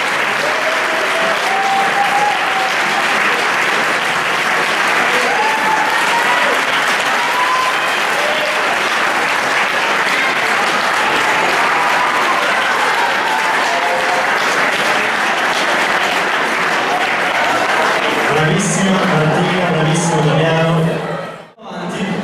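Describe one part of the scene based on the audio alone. A crowd cheers and chatters over the applause.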